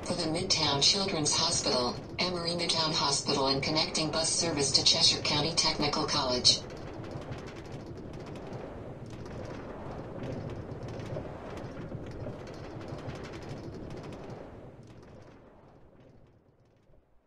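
A cart rumbles along rails, then rolls to a stop.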